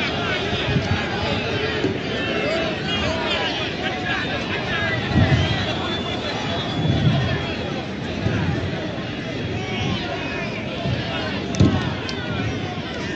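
Men talk loudly nearby among the crowd.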